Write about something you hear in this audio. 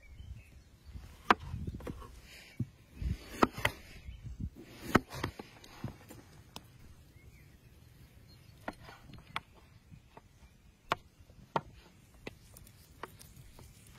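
A knife chops through potatoes onto a wooden board.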